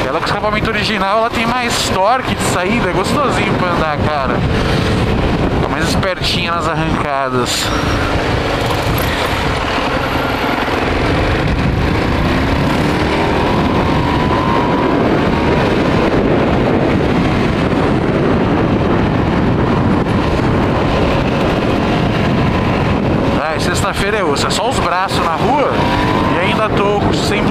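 A motorcycle engine drones close by, revving up and dropping as it shifts gears.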